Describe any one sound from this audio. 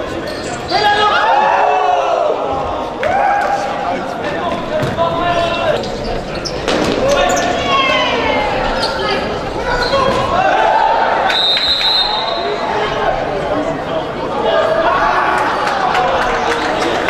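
Spectators cheer and call out from the stands.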